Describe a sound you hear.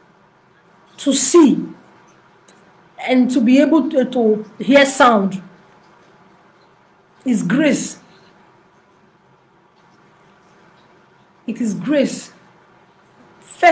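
A woman speaks with animation in short bursts, close to a microphone.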